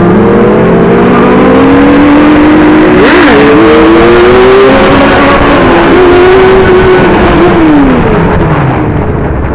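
A motorcycle engine revs loudly at speed, then winds down.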